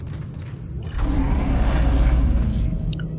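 A heavy metal door slides open with a low mechanical rumble.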